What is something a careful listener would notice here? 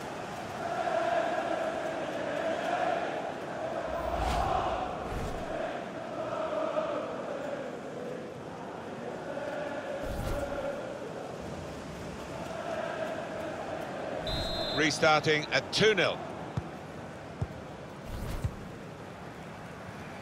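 A large stadium crowd cheers and chants.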